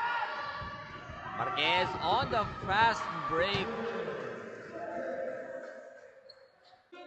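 Young players shout to each other in an echoing gym.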